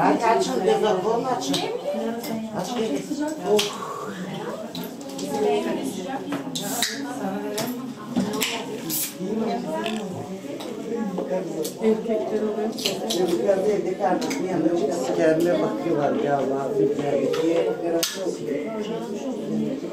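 A crowd of women and men chatter nearby, indoors.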